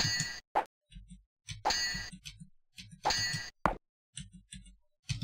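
Swords clash and clang in a video game.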